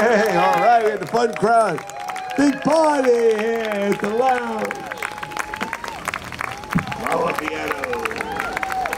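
A mixed crowd of men and women cheers and whoops loudly nearby.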